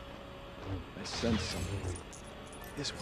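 Blaster bolts fire in quick bursts.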